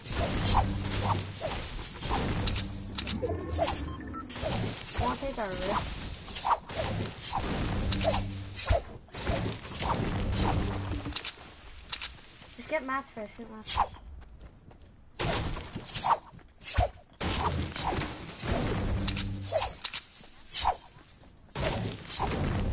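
A pickaxe chops rhythmically at trees and bushes.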